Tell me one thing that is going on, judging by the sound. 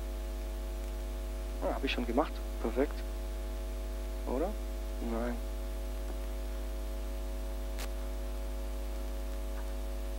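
A projector hums steadily.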